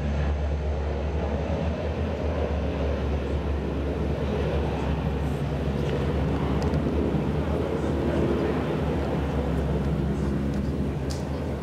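Wind blows steadily across a microphone outdoors.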